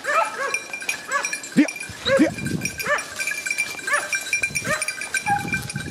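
A dog yelps repeatedly and excitedly nearby.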